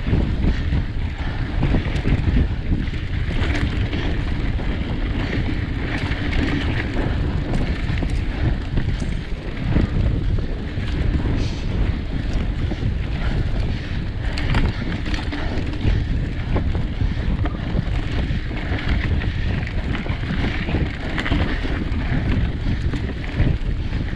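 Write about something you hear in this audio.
Wind rumbles loudly across a close microphone outdoors.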